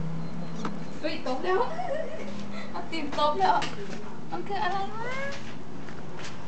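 A kitten meows in high, rising cries close by.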